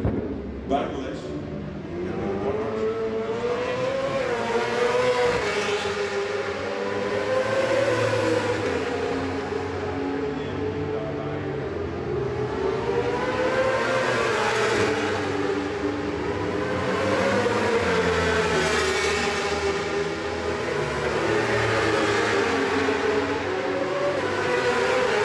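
Racing motorcycle engines scream and whine, rising and falling in pitch as they pass.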